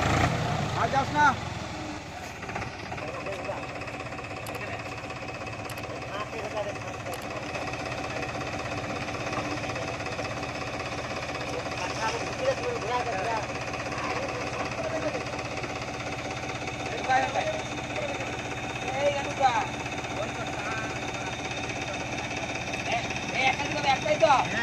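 A tractor engine rumbles steadily nearby.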